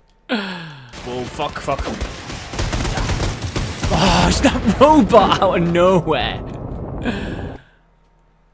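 A heavy machine gun fires rapidly.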